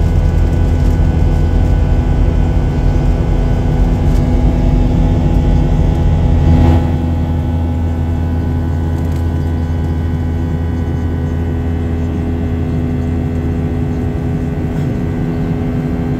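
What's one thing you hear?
A jet engine roars steadily, heard from inside the cabin.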